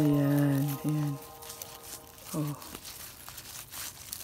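Fingers rub and rustle against a dry flower head.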